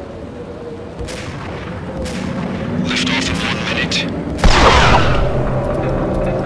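A sniper rifle fires several loud shots that echo away.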